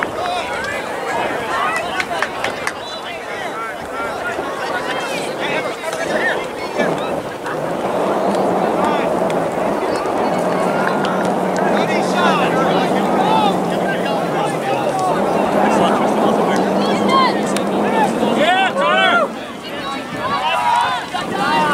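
Young players and spectators chatter and call out across an open field outdoors.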